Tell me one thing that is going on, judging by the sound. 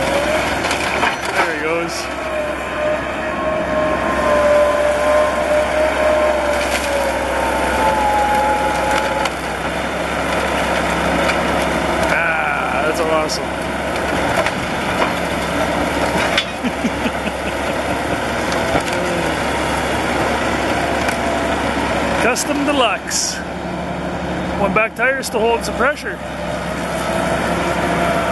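Bulldozer tracks clank and squeal as they move.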